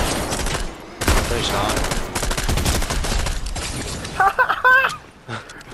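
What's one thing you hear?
Video game gunfire cracks in rapid bursts.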